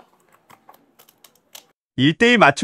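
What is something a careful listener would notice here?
Small plastic parts click softly.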